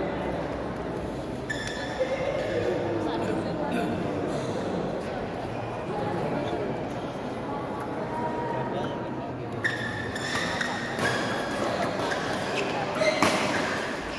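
A crowd of spectators murmurs in the background.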